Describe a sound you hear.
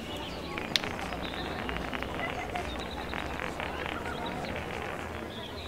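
A small ball rolls and clatters over cobblestones.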